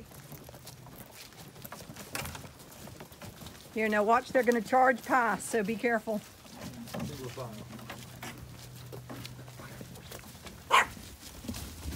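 A wheelbarrow rattles as it is pushed over grass.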